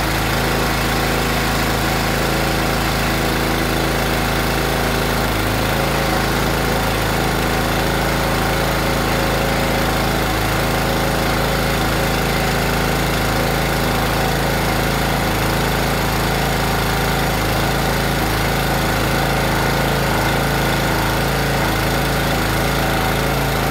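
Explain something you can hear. A hydraulic pump whines as a ram pushes out and draws back.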